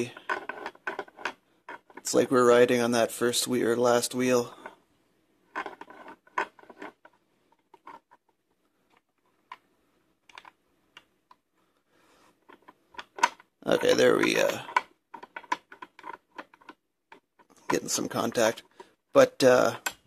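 Small metal clicks and ticks come from a lock's dial being turned by hand.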